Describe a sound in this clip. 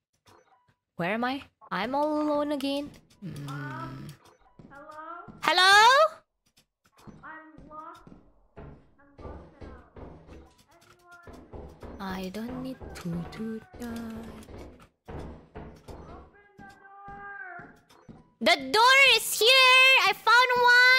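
A young woman speaks with animation into a microphone, at times in a high, sing-song voice.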